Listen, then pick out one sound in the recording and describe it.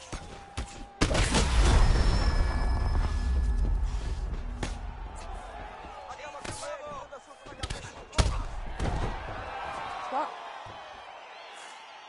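A crowd roars and cheers loudly.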